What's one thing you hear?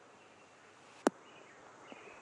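A golf ball lands on a green with a soft thud.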